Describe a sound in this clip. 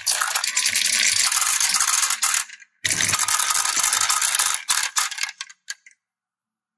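Plastic balls rattle down a wooden track and clatter into a toy truck's bed.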